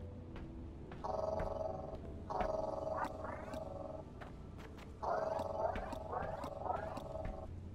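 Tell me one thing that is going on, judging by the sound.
A game tool hums and buzzes in bursts.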